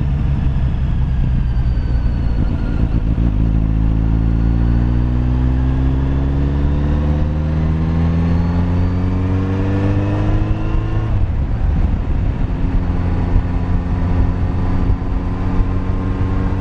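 Wind buffets loudly as the motorcycle rides along.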